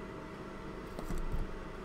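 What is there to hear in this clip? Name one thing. Wire cutters snip with a small click.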